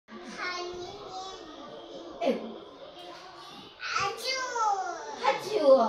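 A little girl talks and squeals excitedly close by.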